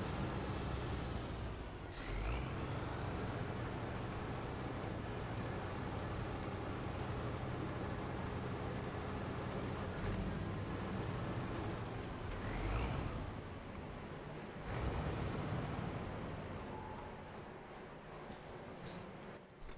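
A heavy truck engine rumbles steadily, rising and falling as it climbs and drives.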